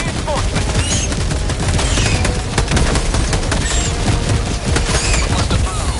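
Insect creatures screech.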